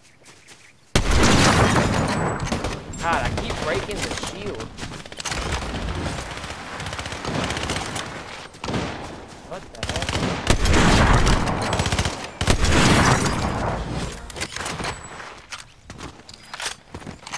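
Rapid gunshots crack in bursts.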